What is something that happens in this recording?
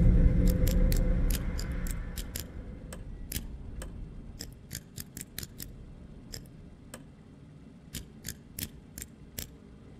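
Combination lock dials click as they turn, one notch at a time.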